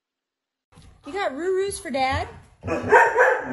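A dog whines and yowls.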